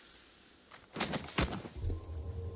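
A sword slashes and strikes an armoured enemy.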